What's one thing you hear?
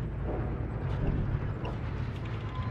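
Explosions and gunfire crack nearby.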